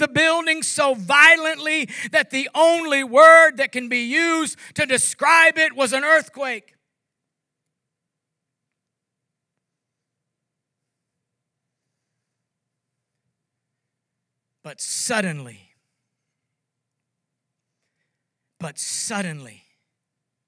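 An older man speaks with animation through a microphone, pausing at length between phrases.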